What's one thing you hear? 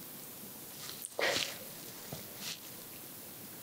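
Nail clippers snip a fingernail.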